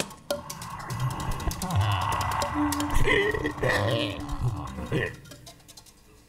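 An ensemble plays homemade percussion instruments in a large hall.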